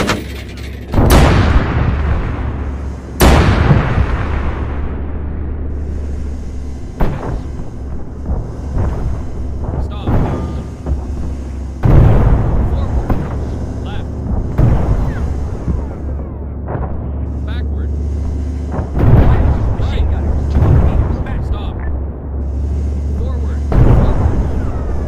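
Loud explosions boom and echo repeatedly.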